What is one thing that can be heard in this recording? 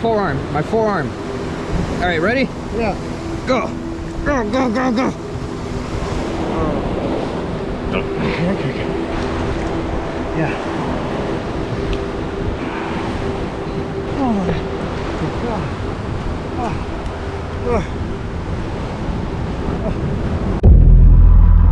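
Water rushes and splashes nearby.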